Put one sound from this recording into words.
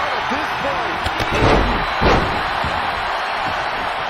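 A heavy body slams onto a wrestling ring mat with a thud.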